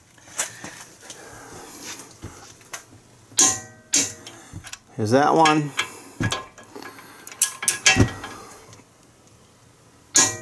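A metal pry bar clicks and knocks against metal.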